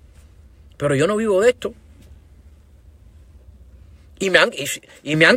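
A middle-aged man speaks calmly and close by, in short bursts.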